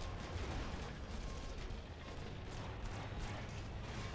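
Explosions burst nearby.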